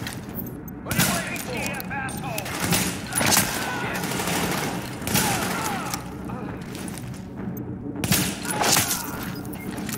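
Rifle shots ring out in loud bursts.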